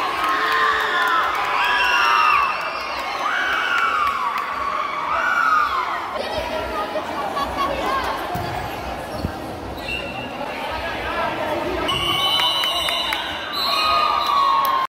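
A crowd of spectators chatters and calls out in an echoing hall.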